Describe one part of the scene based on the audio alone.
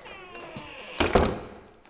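A door handle rattles and clicks as a door is opened.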